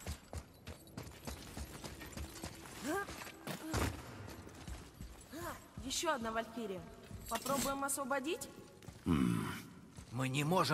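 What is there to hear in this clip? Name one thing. Heavy footsteps thud on a stone floor.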